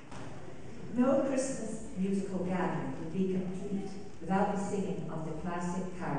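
A large choir sings in a reverberant hall.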